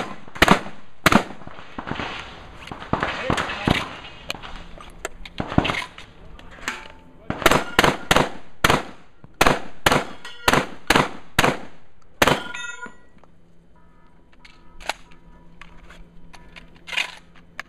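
Gunshots ring out in quick bursts outdoors.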